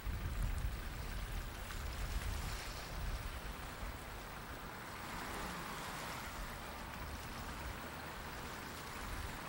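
Wind blows and rumbles across open water.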